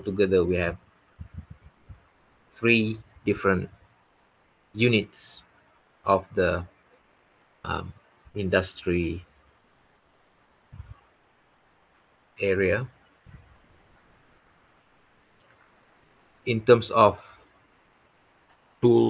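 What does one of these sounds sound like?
A man speaks calmly over an online call, with pauses between phrases.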